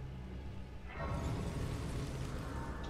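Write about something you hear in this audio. A shimmering magical chime swells.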